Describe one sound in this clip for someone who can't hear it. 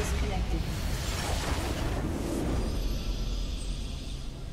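A loud magical blast bursts and rumbles, then fades.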